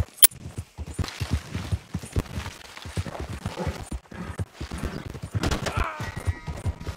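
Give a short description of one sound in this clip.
Tall crop stalks rustle and swish as a horse pushes through them.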